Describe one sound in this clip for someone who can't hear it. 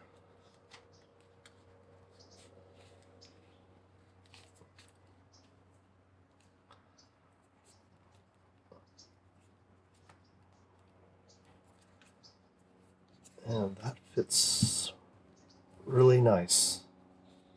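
Small plastic clicks and taps come from a handheld device being handled.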